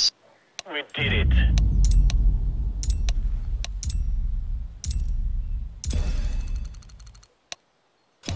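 Triumphant game music plays loudly.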